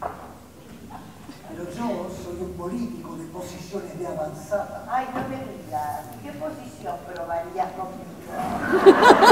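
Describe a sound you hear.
A woman speaks expressively, heard from the audience in a hall.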